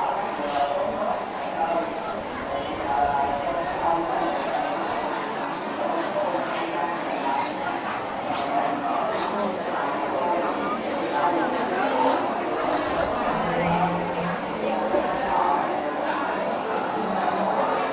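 A crowd of men and women chants together in unison, filling an echoing room.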